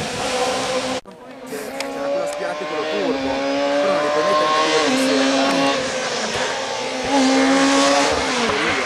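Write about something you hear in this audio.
A rally car engine roars and revs through gear changes as the car speeds past.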